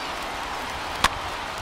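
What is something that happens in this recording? A pitched baseball smacks into a catcher's mitt.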